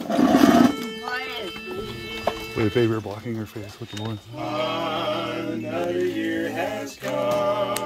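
A group of men sing together in close harmony.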